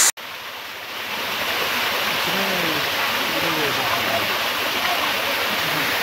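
Water splashes down over rocks in a small waterfall.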